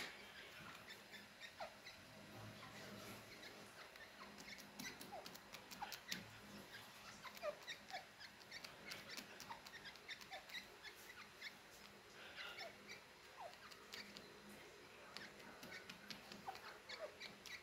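Small birds peck and tap lightly at a hard floor, close by.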